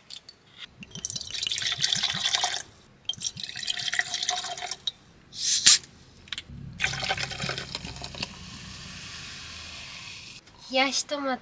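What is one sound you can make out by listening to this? Liquid pours and fizzes into metal cups.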